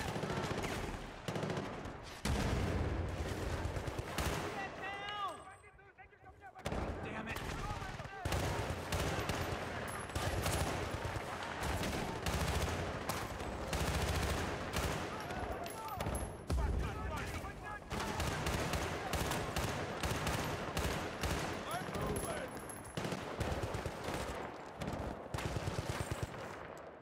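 Rapid rifle shots crack loudly in short bursts.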